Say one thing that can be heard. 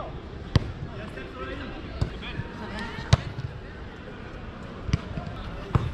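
A football is kicked hard with sharp thumps.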